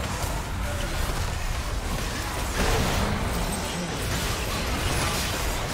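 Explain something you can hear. Magic blasts and clashing weapons crackle in a busy video game battle.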